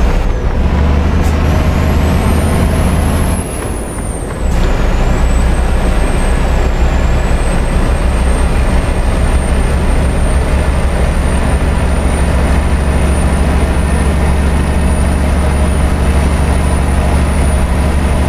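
Tyres roll on a motorway.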